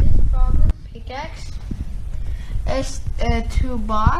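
A boy speaks close by with animation.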